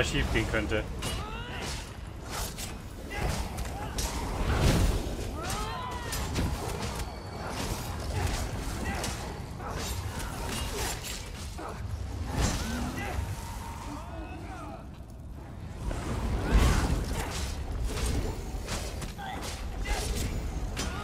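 Magic spells crackle and blast in a fight.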